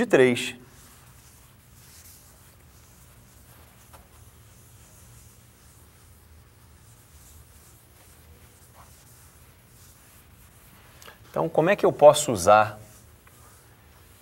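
An eraser rubs across a chalkboard.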